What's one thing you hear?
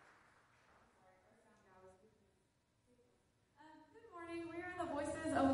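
A choir of young men and women sings together in a large echoing hall.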